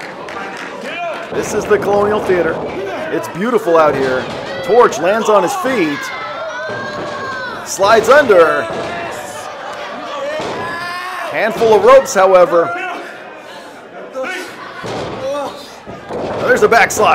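A crowd of men and women shouts and cheers in a large echoing hall.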